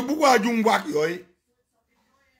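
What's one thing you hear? A man speaks loudly and with animation close to the microphone.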